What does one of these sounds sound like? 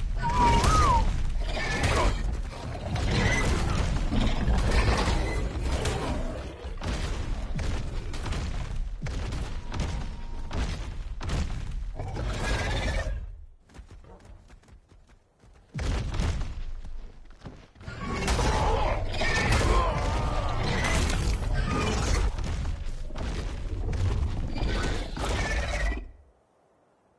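A large creature strikes the ground with heavy, repeated thuds.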